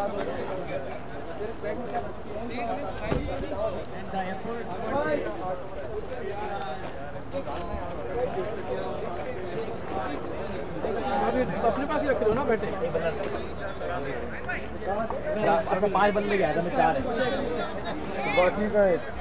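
Several men talk and call out nearby outdoors.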